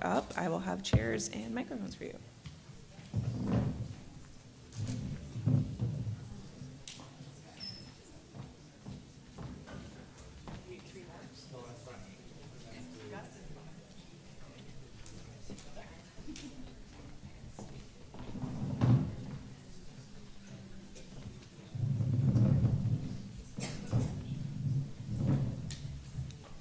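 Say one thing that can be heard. Chairs scrape and knock on a wooden stage.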